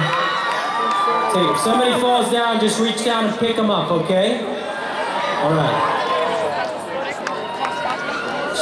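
A young man sings into a microphone over loud concert speakers.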